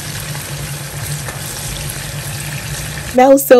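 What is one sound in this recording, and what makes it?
A wooden spoon stirs food in a pan.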